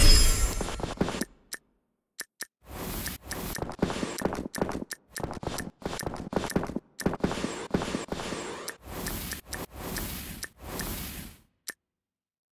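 Game sound effects chime and whoosh as pieces are collected.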